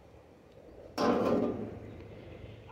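A metal plate scrapes and clatters against a metal sheet.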